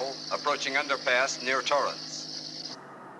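A man speaks briefly in the car.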